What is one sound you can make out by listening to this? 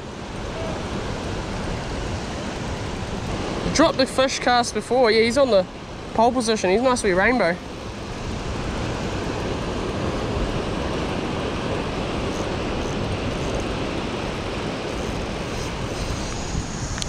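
Fast water rushes and churns loudly nearby.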